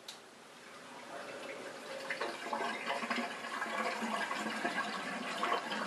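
A dishwasher starts up and runs with a steady whirring swish.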